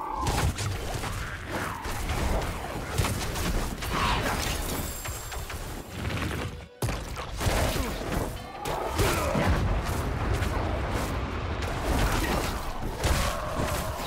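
Fire spells burst and crackle in a video game.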